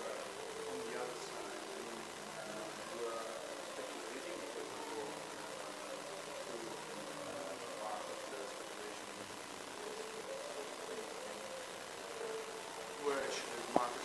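A middle-aged man speaks calmly into a microphone at a distance.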